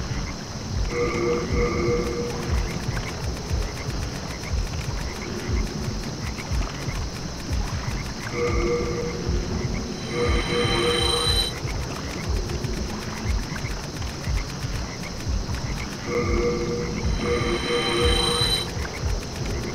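Short electronic chimes ring.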